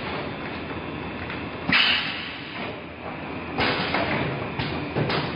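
A packaging machine runs with a steady mechanical whir.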